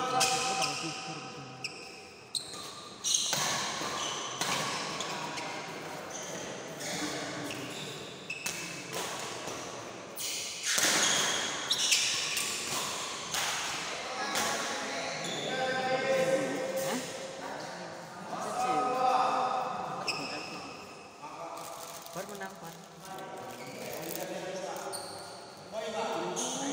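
A crowd of young men chatter and call out in the background.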